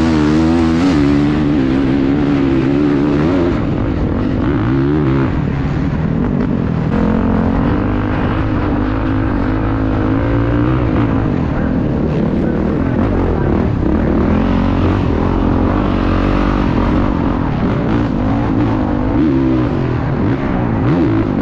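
A dirt bike engine revs hard and up and down, close by.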